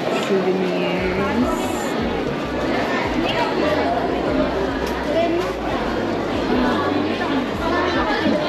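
A crowd of people chatter in the background.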